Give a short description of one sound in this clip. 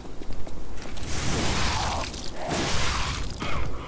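Fire bursts with a loud roaring whoosh.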